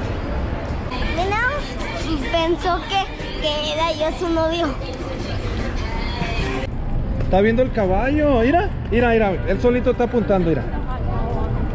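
A young boy talks excitedly close to the microphone.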